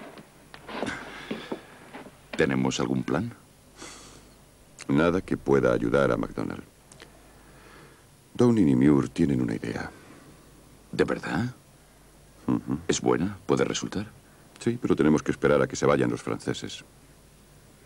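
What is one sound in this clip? Two men talk calmly and close by.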